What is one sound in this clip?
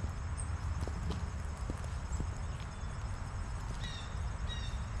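Footsteps patter on a paved path.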